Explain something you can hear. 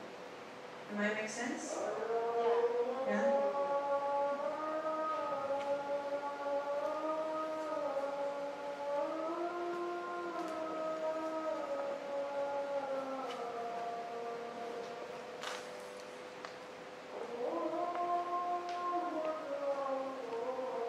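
A young woman sings slowly through a microphone and loudspeaker.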